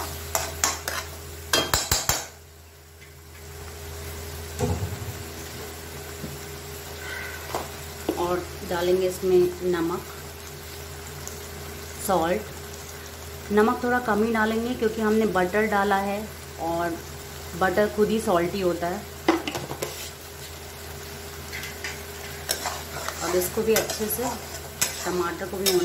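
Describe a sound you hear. A metal spatula scrapes and stirs in a pan.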